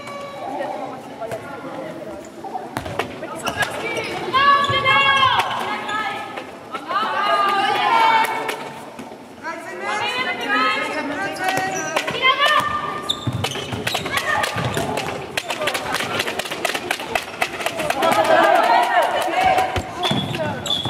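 Sports shoes squeak sharply on a hall floor.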